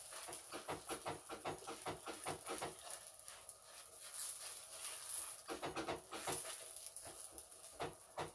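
Hands pat and press soft dough on a pan.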